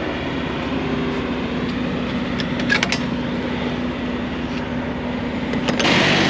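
A truck engine idles steadily with a low hum.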